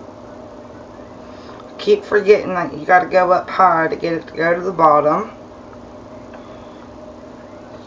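Thick liquid pours softly into a container.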